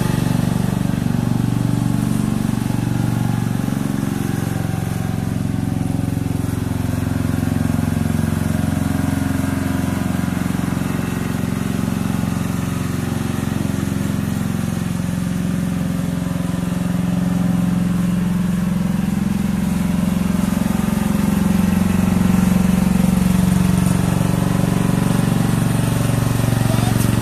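A small riding mower engine hums steadily and close by, its pitch rising and falling as it drives around.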